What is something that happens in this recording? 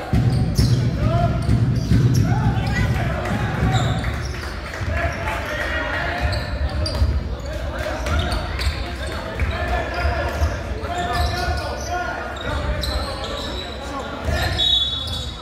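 Spectators call out and cheer.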